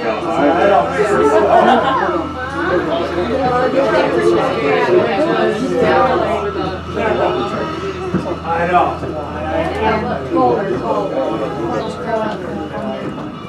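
A cable-hauled incline railway car rumbles as it climbs.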